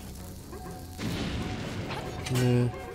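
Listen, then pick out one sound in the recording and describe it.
A small explosion bursts in a video game.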